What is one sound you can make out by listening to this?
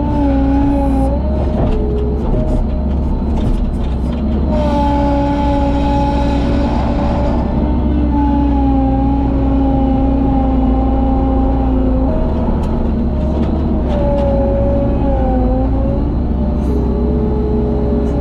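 Rubble rattles and clatters in a loader bucket.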